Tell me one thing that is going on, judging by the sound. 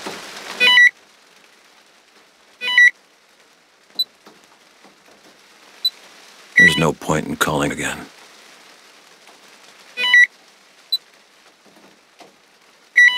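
A handheld device gives short electronic beeps.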